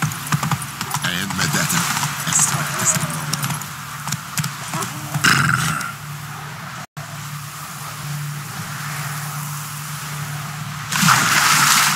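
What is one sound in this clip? Horse hooves thud on a dirt path at a gallop.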